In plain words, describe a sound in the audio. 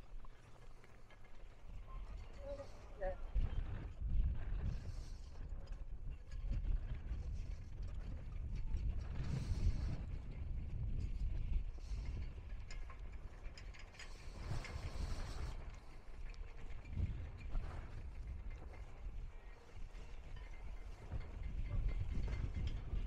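Wind gusts and rumbles steadily outdoors.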